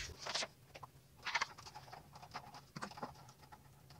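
A plastic box clicks as a hand taps it.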